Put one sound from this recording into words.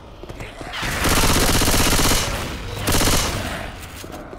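A gun fires rapid bursts at close range.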